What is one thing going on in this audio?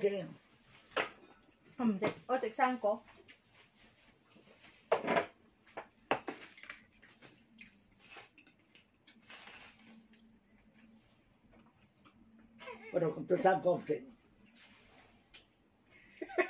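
Cutlery clinks on a plate.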